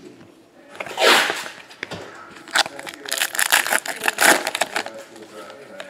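Trading cards rustle and slide against each other in someone's hands.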